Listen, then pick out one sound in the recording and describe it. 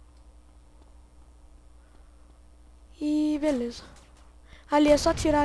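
Footsteps tap lightly on pavement.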